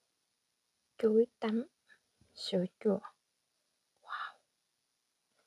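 A woman speaks briefly and softly close to a microphone.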